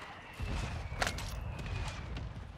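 An explosion booms far off.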